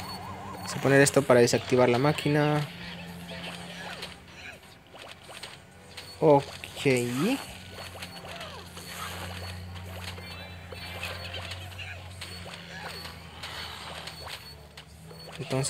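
Small pops and zaps of a battle game play again and again.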